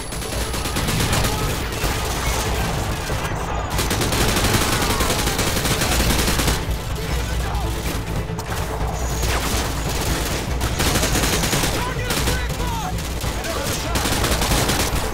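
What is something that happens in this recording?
Rapid gunfire bursts loudly in a video game.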